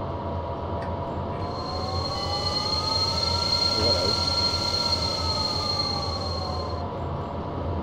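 A train's motor whine rises in pitch and then falls back.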